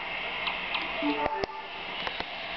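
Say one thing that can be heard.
Short electronic menu beeps sound from a video game.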